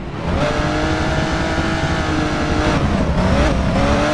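Car tyres screech while sliding.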